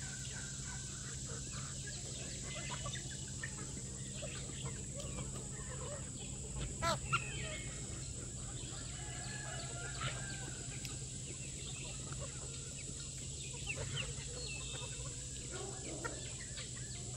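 A flock of chickens clucks and chatters nearby outdoors.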